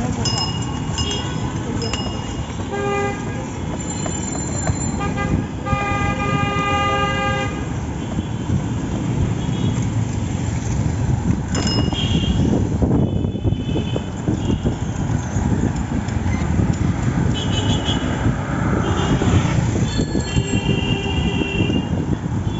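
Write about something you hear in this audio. A cycle rickshaw rattles and rumbles along a paved road.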